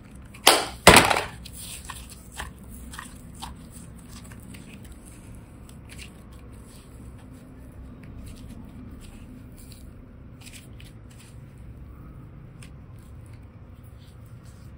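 Soft clay squishes and stretches between fingers.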